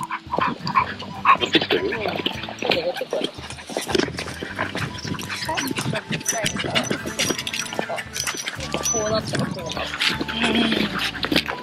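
Women talk with each other close by, outdoors.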